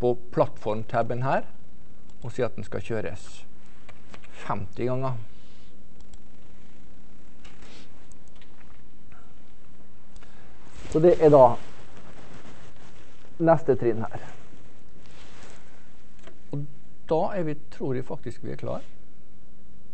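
A man speaks calmly in short phrases with long pauses.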